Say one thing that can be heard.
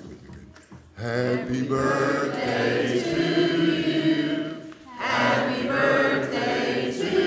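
A group of women sings together.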